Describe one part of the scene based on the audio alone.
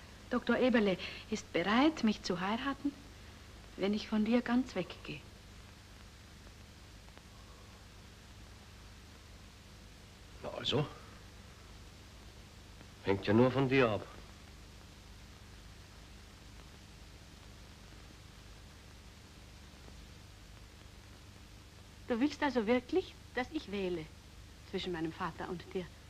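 A woman speaks calmly and earnestly, heard through an old, hissy recording.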